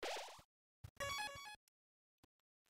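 A short bright chime rings out once.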